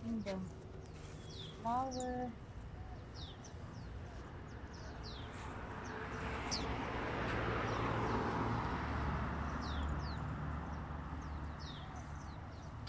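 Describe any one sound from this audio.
Leaves rustle as a woman pulls at a dense vine.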